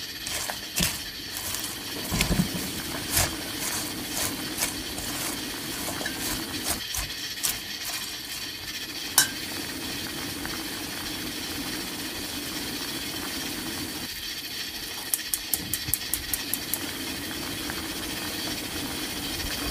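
Water boils hard in a pot, bubbling and popping.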